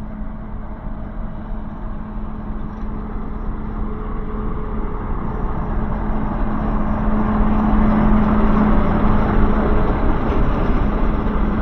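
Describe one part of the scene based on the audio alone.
A diesel locomotive engine rumbles steadily and grows louder as it approaches.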